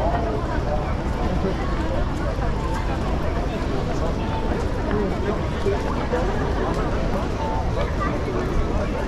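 Footsteps shuffle on pavement as many people walk.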